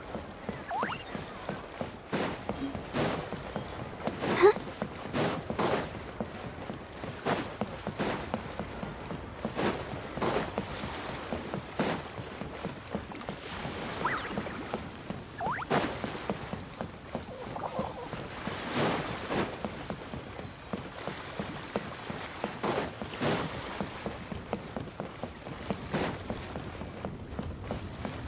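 Footsteps patter quickly on wooden boards.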